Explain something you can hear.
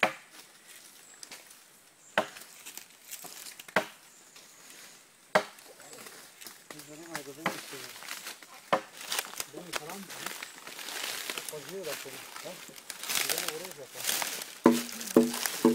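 A machete strikes wood with sharp chopping blows.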